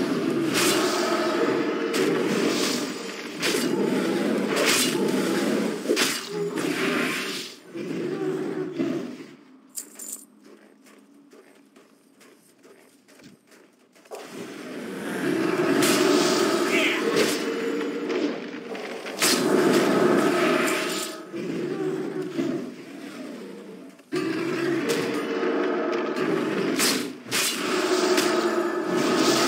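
Magic spells crackle and burst during a fight with a large beast.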